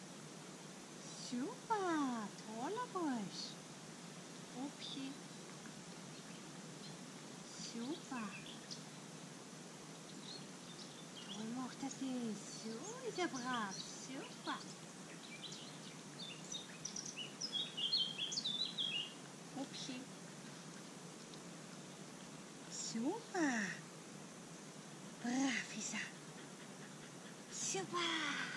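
A young woman talks to a dog in a high, cheerful voice, in short bursts.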